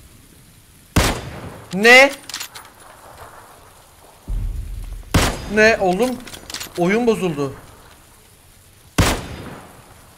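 A sniper rifle fires loud single shots with a short echo.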